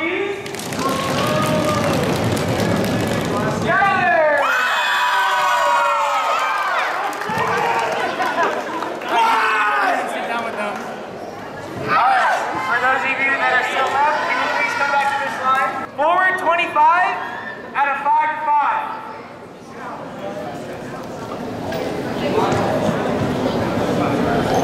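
Young people talk and call out in a large echoing hall.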